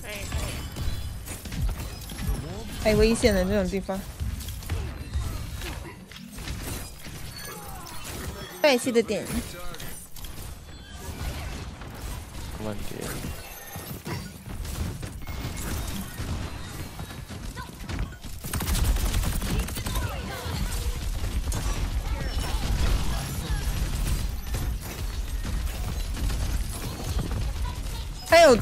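Energy weapons fire in quick bursts.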